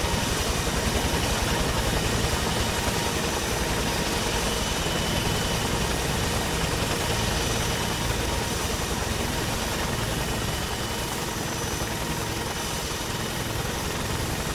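A helicopter's rotor thumps steadily with a loud engine whine.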